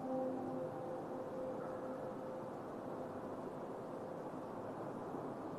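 Electronic synthesizer music plays with droning tones and a dense hiss.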